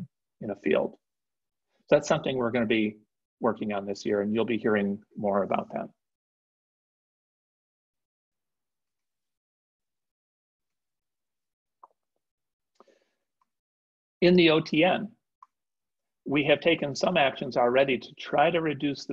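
An elderly man speaks calmly through an online call, pausing between phrases.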